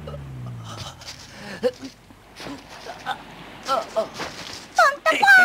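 A young man groans weakly.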